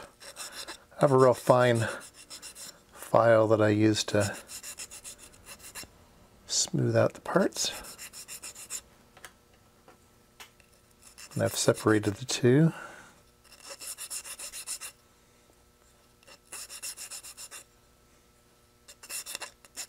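A small metal file rasps in short strokes.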